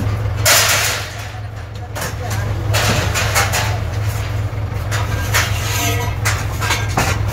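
Metal scaffold frames clank and rattle as they are loaded onto a truck.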